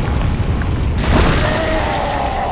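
A burst of fire whooshes loudly.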